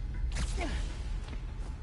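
A web line zips through the air with a quick whoosh.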